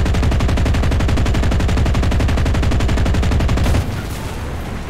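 A propeller aircraft engine roars loudly with a fast, steady throb.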